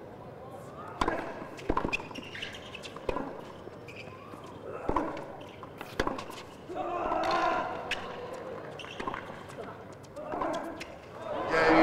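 A tennis ball is struck back and forth with sharp racket hits.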